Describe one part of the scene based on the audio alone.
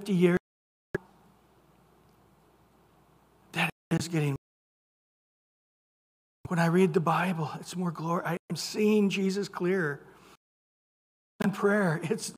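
A middle-aged man speaks with animation through a microphone, pausing often.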